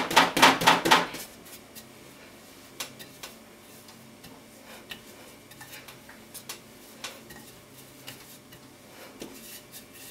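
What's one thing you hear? A rolling pin rolls softly over dough with faint knocks.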